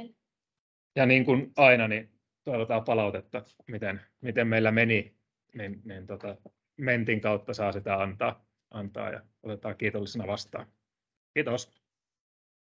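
A man speaks calmly through an online call.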